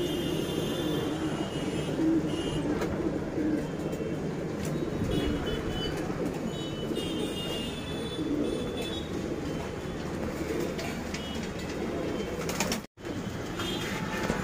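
Pigeons coo in low, throaty rolls.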